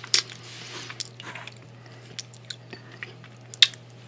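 Thick sauce squelches as food is dipped.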